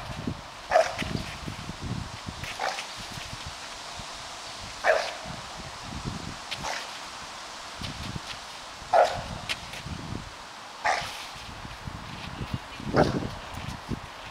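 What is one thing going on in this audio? A dog yelps in short, sharp barks outdoors.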